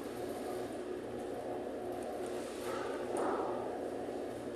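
A squeeze bottle squirts liquid with a soft splutter.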